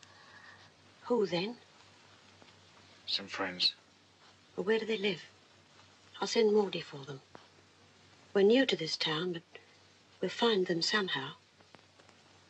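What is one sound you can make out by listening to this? A middle-aged woman speaks in short, tense phrases with pauses between them.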